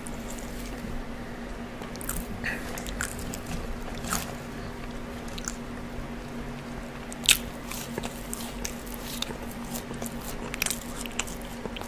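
Gloved fingers rustle and tap against crispy fries close to a microphone.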